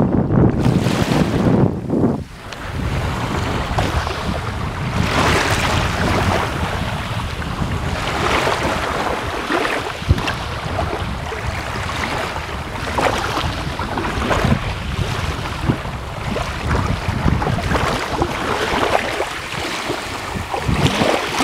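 Sea waves lap and splash steadily, outdoors in a breeze.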